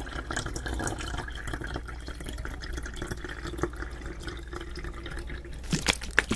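Water pours and trickles into a small bottle close to a microphone.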